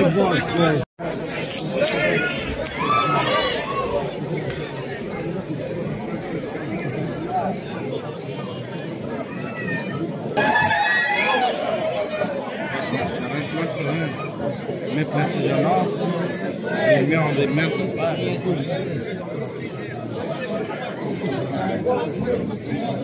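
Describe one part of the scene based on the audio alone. A crowd chatters and calls out across an open street.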